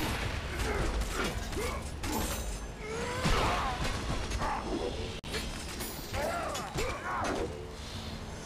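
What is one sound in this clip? Creatures shriek and growl in pain.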